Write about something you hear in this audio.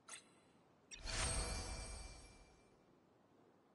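A magical shimmering chime swells and fades.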